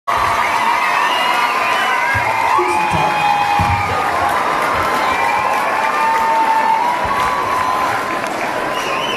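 A guitar strums along.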